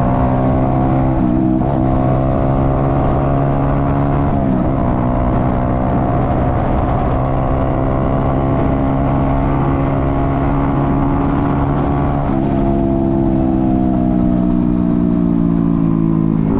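A motorcycle engine hums steadily up close, shifting pitch as gears change.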